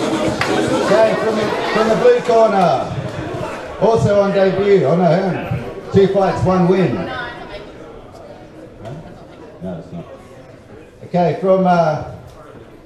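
A man announces loudly through a loudspeaker in a large echoing hall.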